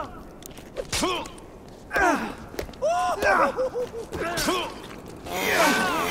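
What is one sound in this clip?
Blunt weapon blows thud against bodies.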